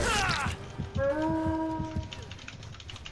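A blade swings and strikes with a heavy hit.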